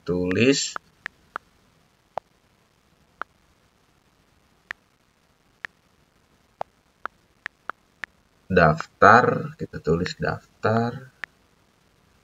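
Phone keyboard keys click with short, sharp taps.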